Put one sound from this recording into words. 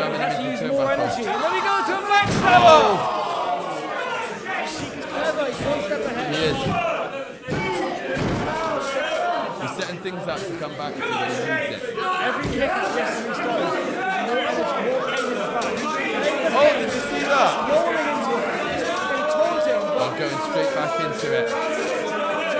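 A crowd of spectators shouts and cheers in an echoing room.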